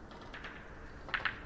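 A cue strikes a ball on a table with a sharp click.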